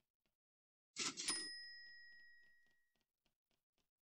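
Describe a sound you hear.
A short electronic chime rings out and fades.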